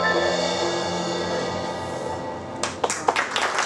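A small acoustic band plays a lively tune with plucked strings.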